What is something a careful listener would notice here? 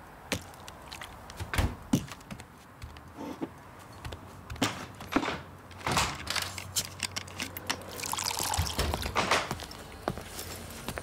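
Glass clinks and knocks.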